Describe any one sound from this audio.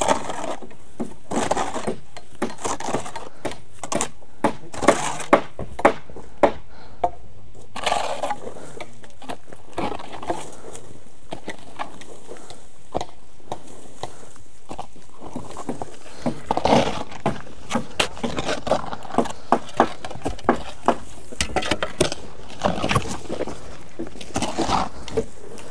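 A hoe chops into dry earth with repeated thuds.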